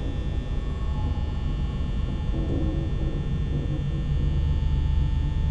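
Faint crackling static hisses throughout.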